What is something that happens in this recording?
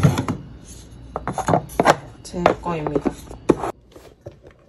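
A lid snaps onto a plastic container.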